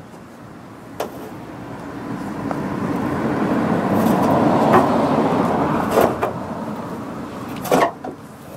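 A car drives past, growing louder and then fading.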